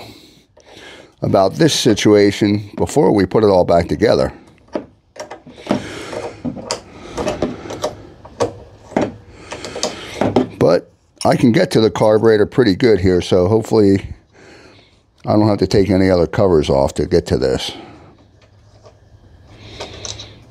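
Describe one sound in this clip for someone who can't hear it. Hands handle metal parts on a snowblower's plastic housing, with small clicks and scrapes.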